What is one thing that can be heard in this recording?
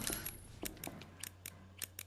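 A metal lock clanks as it is struck with a hatchet.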